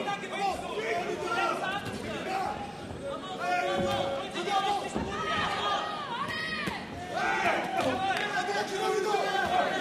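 Gloved punches thud against a boxer's body.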